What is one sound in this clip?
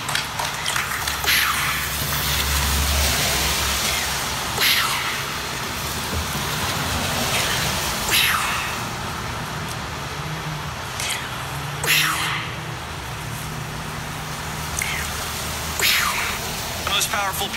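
Cars swish past on a wet road.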